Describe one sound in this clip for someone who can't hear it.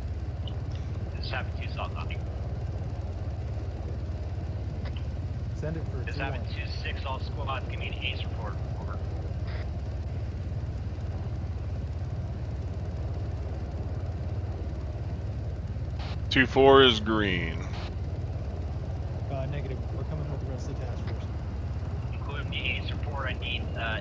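A helicopter's rotor thumps in a steady, low drone.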